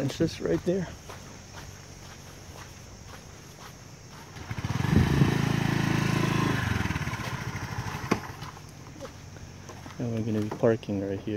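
A motorbike engine hums and revs up nearby.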